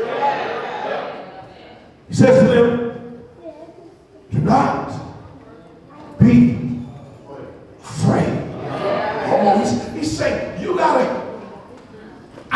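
A man preaches with animation through a microphone in an echoing hall, in loud bursts with pauses.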